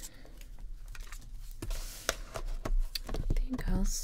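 A plastic ruler taps and slides on paper.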